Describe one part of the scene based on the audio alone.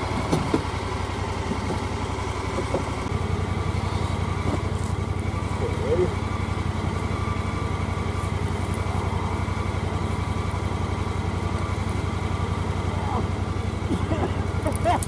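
A machine's engine idles with a steady, low rumble.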